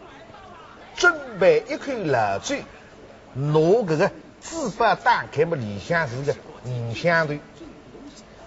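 A middle-aged man speaks with animation.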